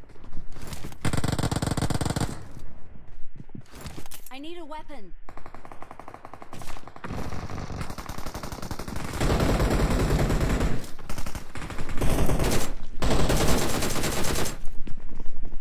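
Rapid bursts of gunfire crackle in a video game.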